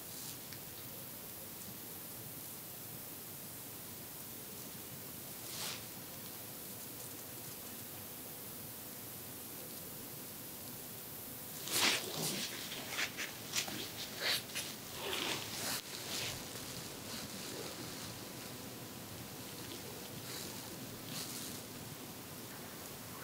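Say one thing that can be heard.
A thin wooden stick scratches softly inside an ear, very close.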